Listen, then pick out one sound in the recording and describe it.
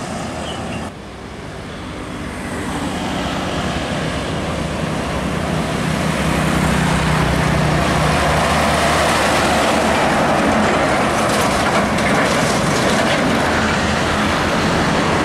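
A heavy truck engine roars louder as it approaches and passes close by.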